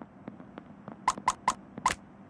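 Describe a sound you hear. Four short electronic beeps sound in quick succession.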